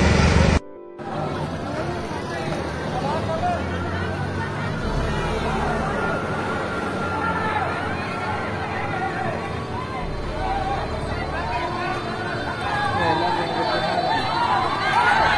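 A crowd of men and women talks and shouts excitedly outdoors.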